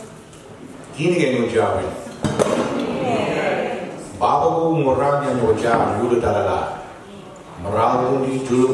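Another woman speaks through a microphone in an echoing hall.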